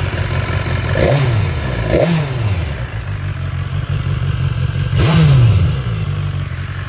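A motorcycle engine revs sharply a few times and falls back.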